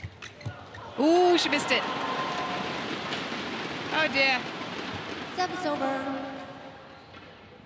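A crowd cheers and applauds loudly in a large echoing hall.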